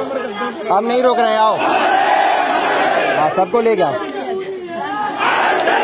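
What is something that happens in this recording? A man shouts slogans loudly close by.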